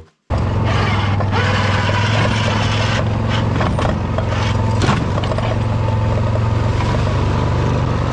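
A snow plough blade scrapes and pushes snow.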